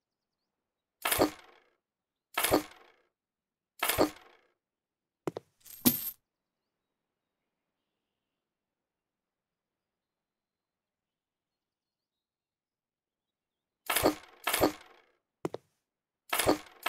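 Light furniture thumps down onto a wooden floor several times.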